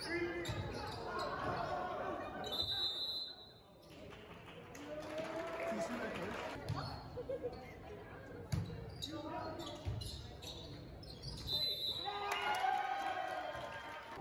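Young players shout and call out to each other.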